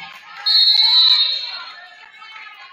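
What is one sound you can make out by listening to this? A referee's whistle blows sharply in a large echoing gym.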